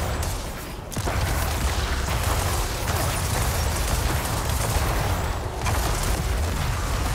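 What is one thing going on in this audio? Game spell effects crash and crackle in a dense, noisy burst.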